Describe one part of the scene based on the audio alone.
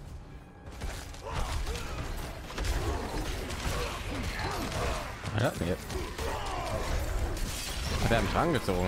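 Magic blasts and heavy blows crash in a loud fight.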